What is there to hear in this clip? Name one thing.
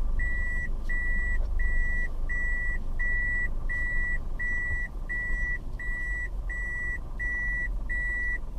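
A car's reversing alarm beeps in an even, rapid rhythm.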